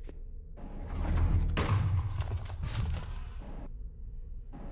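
An explosion bursts with a loud blast.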